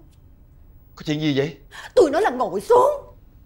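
A man speaks loudly and angrily.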